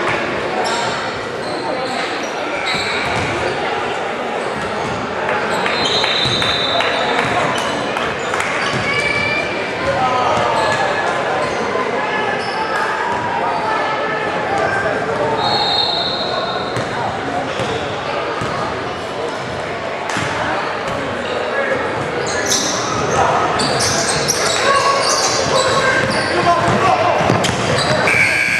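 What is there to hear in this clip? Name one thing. A crowd chatters in a large echoing gym.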